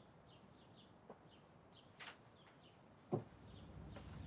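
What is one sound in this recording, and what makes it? A man steps heavily across the floor.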